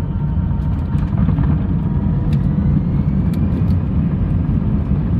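An airliner's engines spool up to a louder roar as it speeds down the runway.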